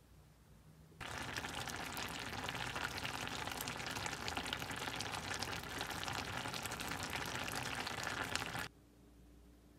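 A stew bubbles and sizzles loudly in a pan.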